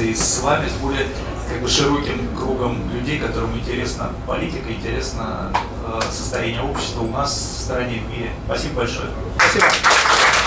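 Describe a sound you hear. A middle-aged man speaks calmly and with animation into a microphone.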